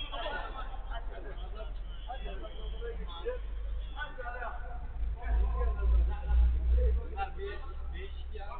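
Men shout and call out to each other across a pitch, distant and echoing.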